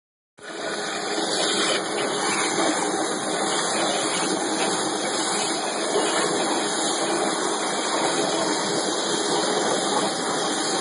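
A water jet cutter hisses loudly and steadily as it cuts.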